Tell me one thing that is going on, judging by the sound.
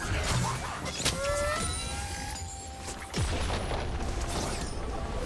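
Game characters clash with quick hits and zaps.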